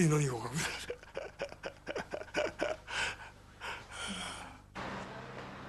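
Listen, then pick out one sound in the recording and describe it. An elderly man laughs heartily.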